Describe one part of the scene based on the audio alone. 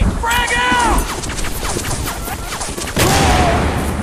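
A grenade explodes with a loud bang.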